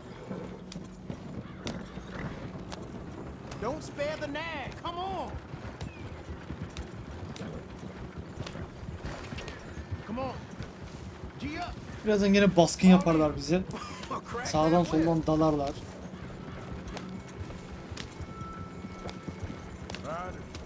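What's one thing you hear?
A horse-drawn wagon rattles and creaks along a dirt track.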